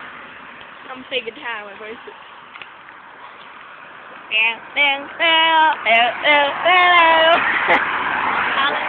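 A young woman sings loudly close by.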